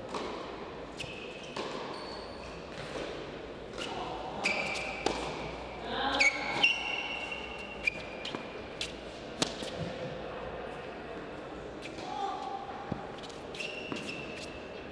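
Tennis shoes squeak sharply on a hard court.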